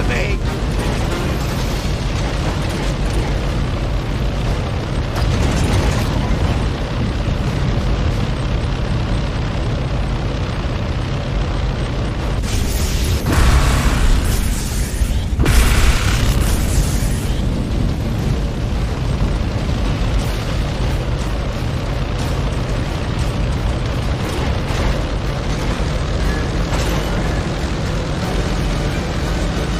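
A heavy vehicle's engine rumbles steadily as it drives.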